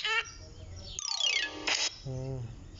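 A game plays a short falling chime.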